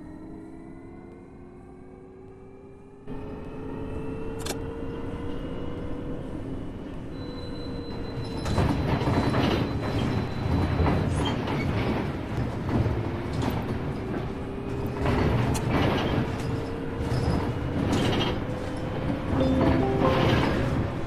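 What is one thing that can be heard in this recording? A bus engine hums steadily, its pitch slowly rising and falling as the bus drives.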